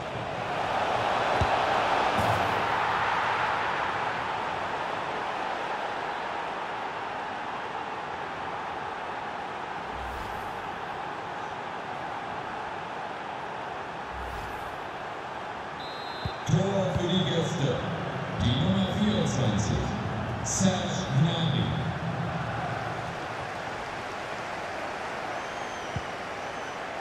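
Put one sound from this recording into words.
A large stadium crowd roars and cheers, then settles to a steady murmur.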